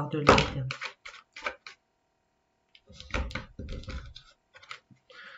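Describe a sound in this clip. Playing cards riffle and flap as they are shuffled.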